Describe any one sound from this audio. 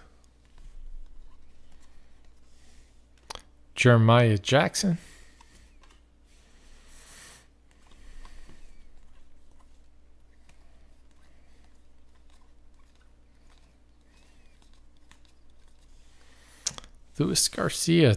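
Trading cards rustle and slide against each other as they are flipped through.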